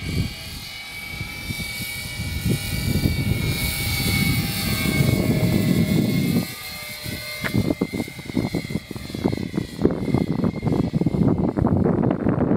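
A radio-controlled model tiltrotor whines as it flies overhead.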